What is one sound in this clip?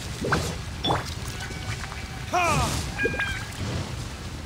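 Magic attacks burst and crackle.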